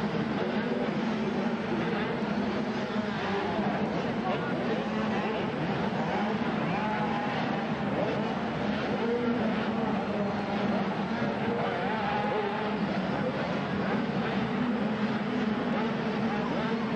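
Dirt bike engines rev and whine loudly as riders race past.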